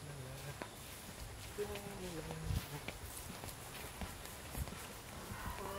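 Footsteps crunch on dry straw.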